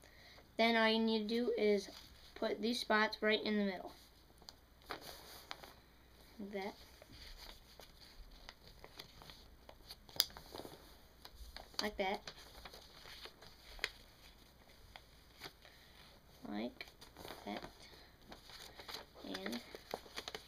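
Paper crinkles and rustles as it is folded and creased.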